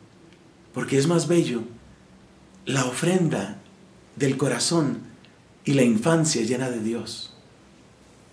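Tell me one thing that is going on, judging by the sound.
A man speaks calmly in short phrases, close to the microphone.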